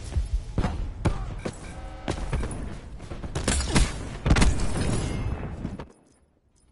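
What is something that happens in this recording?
Gunshots crack and explosions boom in bursts.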